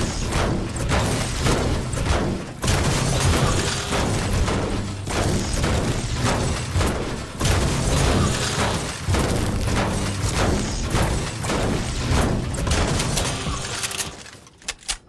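A pickaxe strikes metal again and again with sharp clanks.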